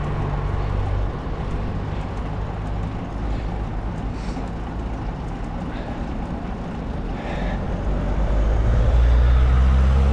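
Tyres hum on a smooth road.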